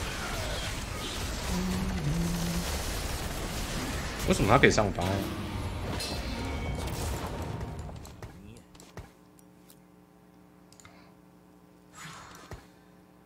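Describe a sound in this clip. A young man talks with animation into a microphone.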